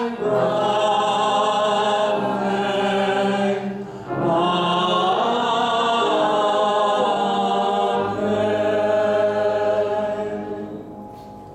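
A woman sings long, wavering notes through a microphone.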